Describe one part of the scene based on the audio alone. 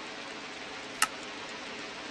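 A single short click sounds.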